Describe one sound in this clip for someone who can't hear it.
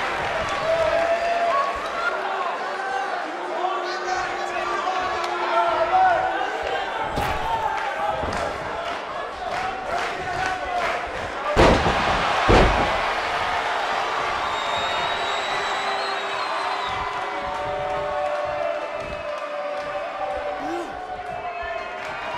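A crowd cheers and shouts loudly throughout.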